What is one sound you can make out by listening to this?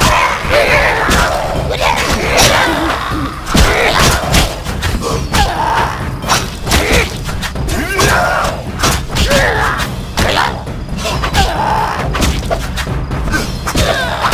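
Swords clash and strike repeatedly.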